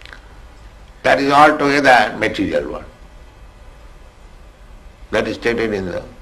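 An elderly man speaks slowly and calmly into a microphone, pausing between phrases.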